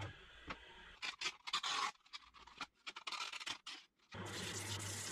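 Sandpaper rustles and crinkles in the hands.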